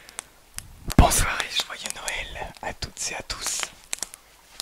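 A young man speaks softly and close to a microphone.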